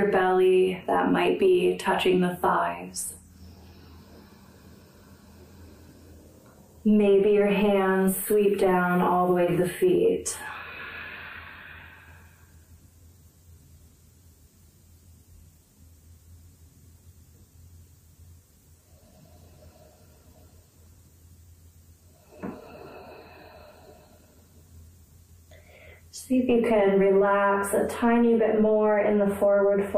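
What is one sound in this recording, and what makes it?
A woman speaks calmly and clearly into a nearby microphone, pausing between phrases.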